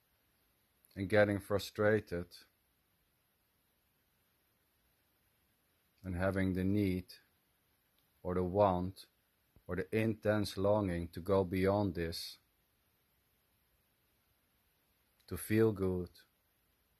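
A middle-aged man speaks calmly in short bursts, close to the microphone.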